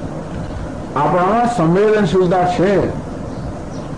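A man sings in a slow, wavering voice close by.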